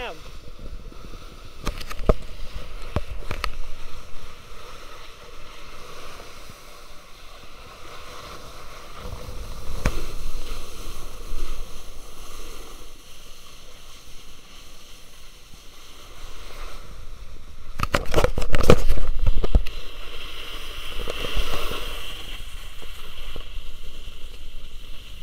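Snowboards scrape and hiss over packed snow.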